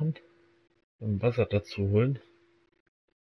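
A man asks a question calmly.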